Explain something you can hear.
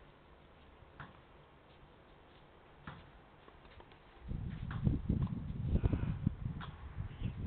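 A tennis ball is struck back and forth in the distance.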